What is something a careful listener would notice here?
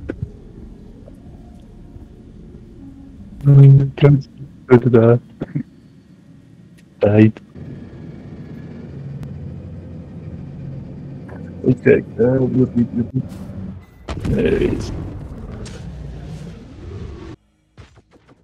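A spacecraft engine hums low and steady.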